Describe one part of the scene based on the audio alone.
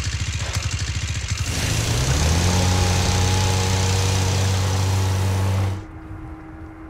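A boat engine chugs, then rises into a steady drone.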